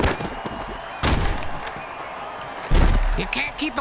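Players collide with heavy thuds.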